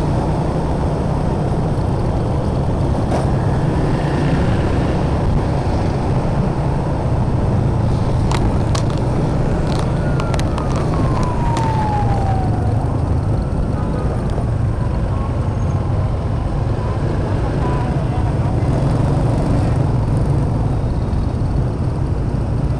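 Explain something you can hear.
Wind rumbles loudly against the microphone of a moving motorbike.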